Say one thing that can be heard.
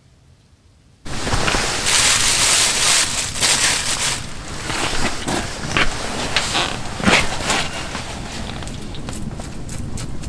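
Boots scuff and shuffle across a crinkly floor close by.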